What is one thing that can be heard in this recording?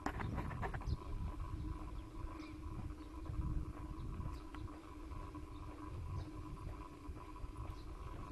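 Wind buffets the microphone outdoors with a low rumble.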